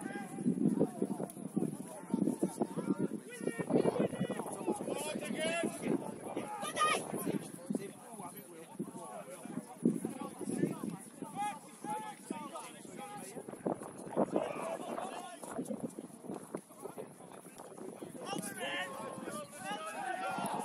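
Young players shout and call out to each other from a distance across an open field.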